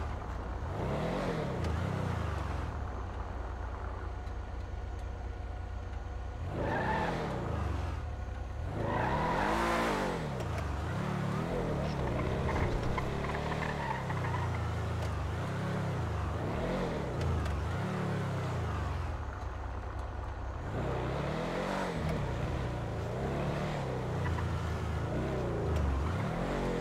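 A car engine revs up and down repeatedly as the car accelerates and shifts gears.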